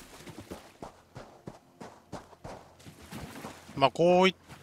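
Quick footsteps run across sand and through shallow water.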